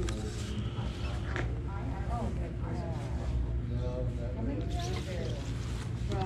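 Plastic sleeves crinkle as they are handled.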